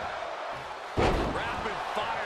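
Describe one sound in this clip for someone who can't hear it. A heavy body slams onto the wrestling ring mat with a loud thud.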